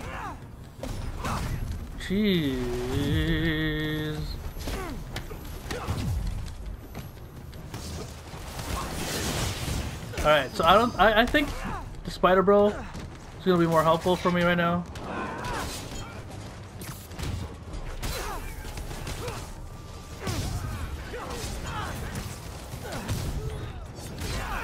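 Punches and kicks thud in a brawl.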